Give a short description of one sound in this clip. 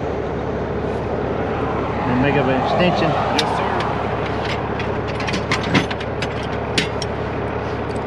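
Metal chains and hooks clink and rattle.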